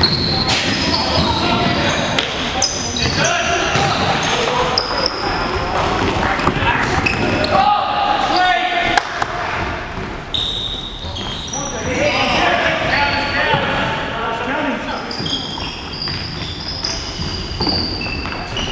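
A ball thuds as players kick it in a large echoing hall.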